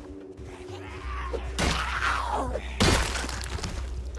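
A heavy blow thuds into a body.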